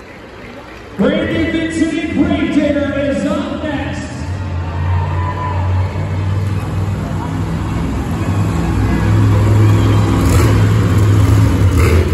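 A monster truck engine roars and revs loudly in a large echoing arena.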